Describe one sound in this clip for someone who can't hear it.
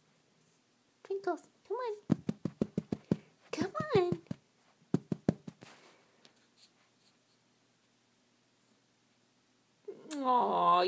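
A small dog howls and whines in rising and falling cries.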